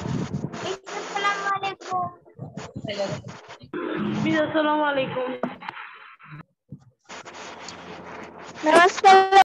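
A girl speaks close to a phone microphone.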